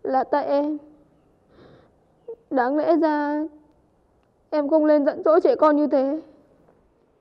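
A young woman speaks with emotion, close by.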